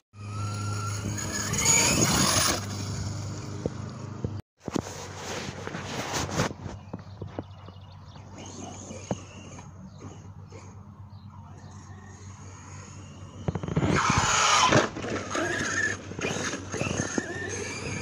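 A toy car's small electric motor whines as it drives across grass.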